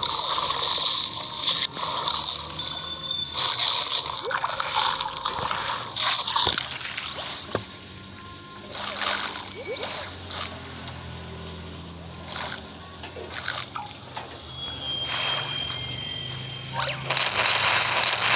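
Video game chomping and splashing effects play as a shark eats.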